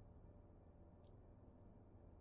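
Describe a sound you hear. A game menu gives a short, high blip as the selection changes.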